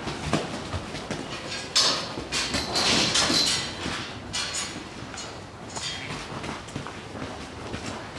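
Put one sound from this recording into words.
A sheep's hooves step on artificial turf.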